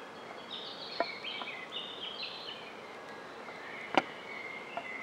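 Zucchini slices tap into a metal pan.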